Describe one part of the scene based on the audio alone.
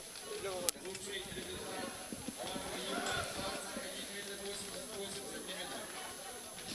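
A crowd of spectators chatters and calls out in the distance.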